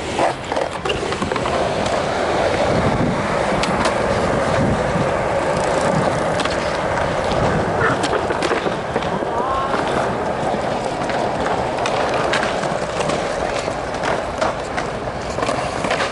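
Skateboard wheels roll with a steady, gritty roar on concrete.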